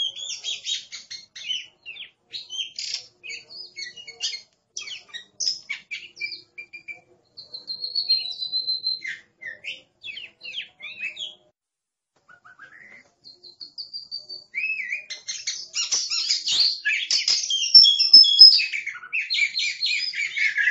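A songbird sings a varied run of whistles and chirps nearby.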